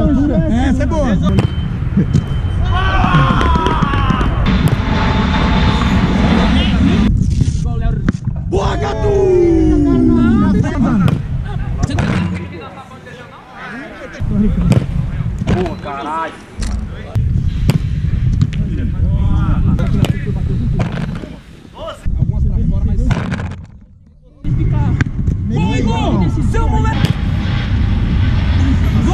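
A football is kicked hard with a dull thud.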